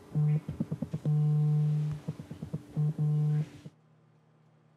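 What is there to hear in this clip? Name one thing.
A phone alarm beeps in a steady repeating tone.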